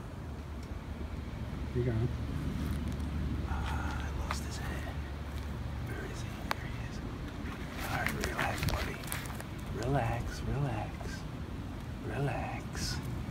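Gloved hands rustle through dry grass and dirt.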